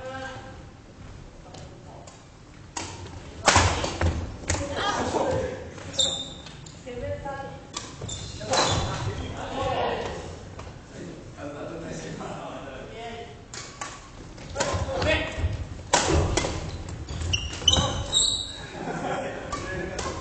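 Young men call out to each other, in a large echoing hall.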